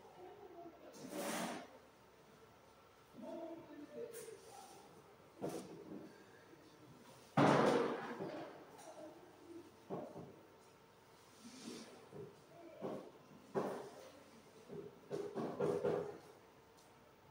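Cables and plugs knock and clatter as equipment is handled.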